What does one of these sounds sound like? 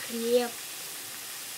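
A young child speaks briefly up close.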